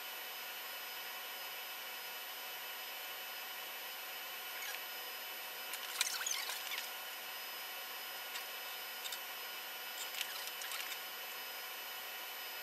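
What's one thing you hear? A steady electrical hum fills the room.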